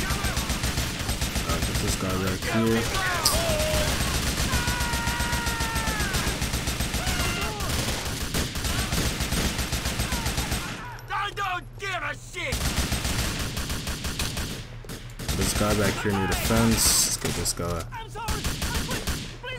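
Gunshots crack rapidly in bursts.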